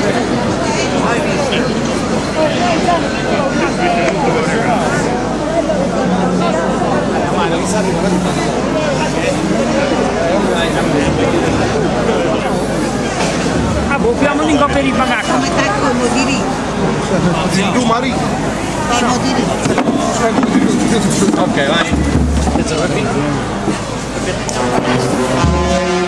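A large crowd murmurs and chatters close by, echoing in a large hall.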